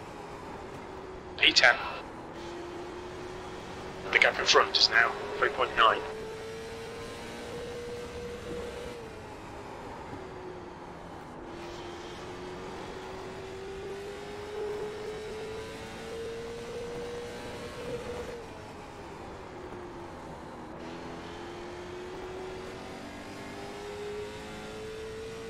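A racing car engine drones steadily, its pitch slowly rising and then dropping in long sweeps.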